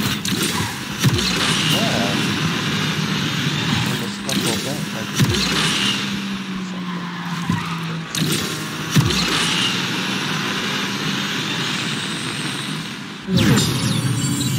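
Nitro boosts whoosh in sudden bursts.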